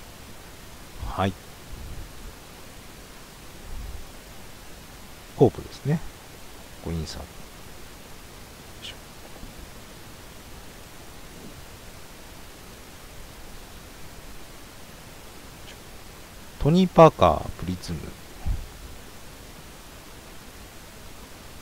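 Cards rustle and slide against each other in hands.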